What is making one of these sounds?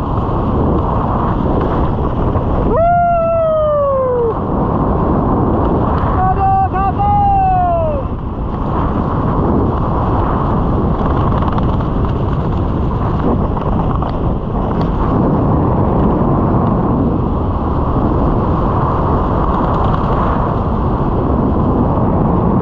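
Wind rushes and buffets loudly past, high in open air.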